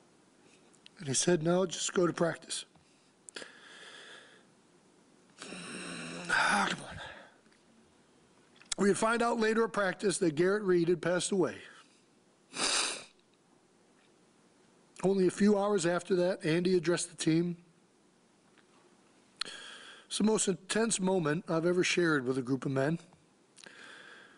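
A man speaks slowly and emotionally into a microphone, pausing between phrases.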